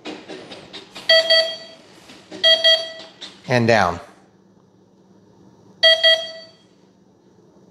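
A radio controller beeps in short tones.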